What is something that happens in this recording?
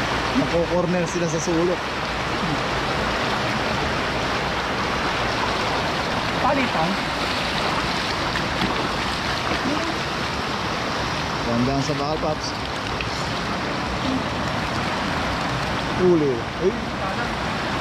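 A man speaks briefly in short bursts close by.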